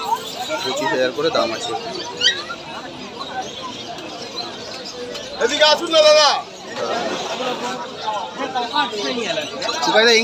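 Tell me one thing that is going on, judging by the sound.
Several men talk nearby in a busy outdoor crowd.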